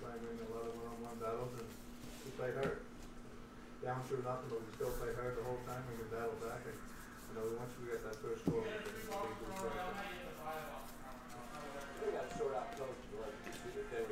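Trading cards rustle and flick in a man's hands.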